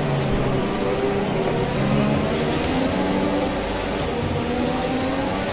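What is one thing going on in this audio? A racing car engine revs loudly and changes pitch as the car accelerates through the gears.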